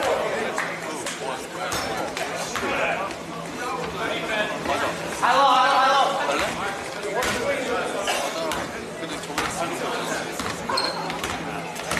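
A basketball bounces on a hard wooden floor in a large echoing gym.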